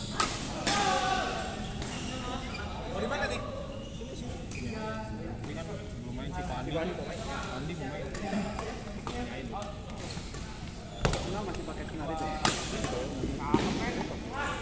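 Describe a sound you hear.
Badminton rackets smack a shuttlecock with sharp pops that echo through a large hall.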